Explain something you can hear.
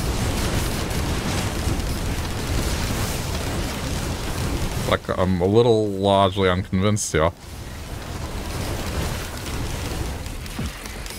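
Magic blasts and crackling bursts of energy rumble and hiss in a fast fight.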